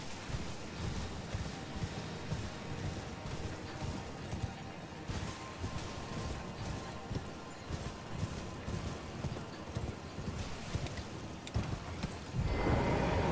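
Hooves thud rapidly on grass as a horse gallops.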